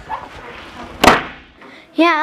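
A door slams shut.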